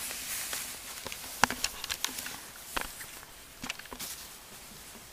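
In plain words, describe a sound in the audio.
Small claws scratch and click on fabric.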